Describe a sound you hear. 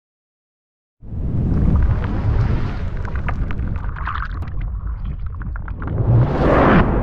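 Water splashes and sprays with a loud whoosh.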